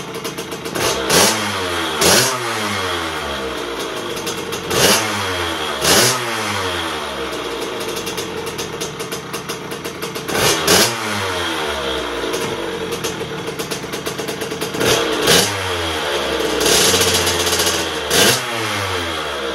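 A small motorcycle engine revs sharply several times.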